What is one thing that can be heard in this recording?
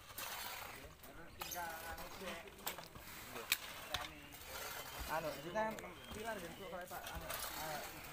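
Shovels scrape into wet soil.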